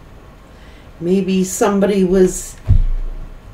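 A middle-aged woman speaks briefly, close to a microphone.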